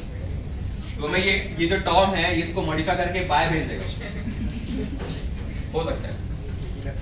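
A young man speaks with animation.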